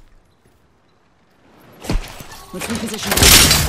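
A heavy thud lands on the ground.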